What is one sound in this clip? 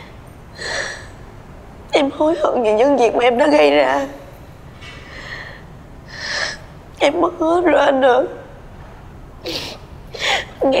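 A young woman sobs with gasping breaths.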